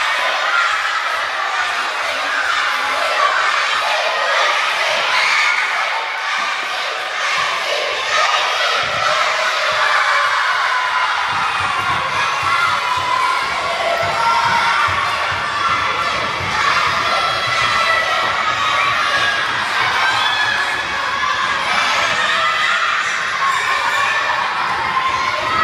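A crowd of children shouts and cheers in a large echoing hall.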